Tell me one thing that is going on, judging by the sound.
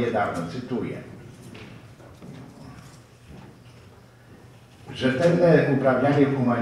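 An elderly man speaks calmly into a microphone, heard through a loudspeaker in a hall.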